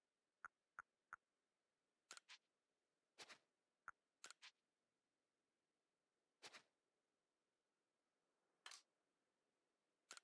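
Short game menu sounds blip and chime as selections are made.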